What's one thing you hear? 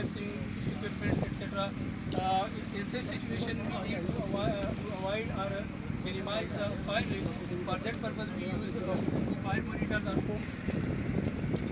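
A man speaks loudly through a megaphone outdoors.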